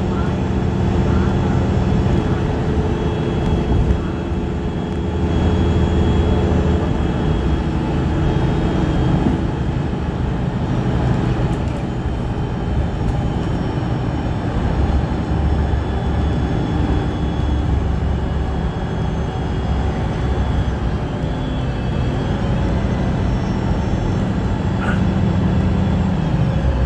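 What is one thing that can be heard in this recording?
A train rumbles steadily through a tunnel, heard from inside a carriage.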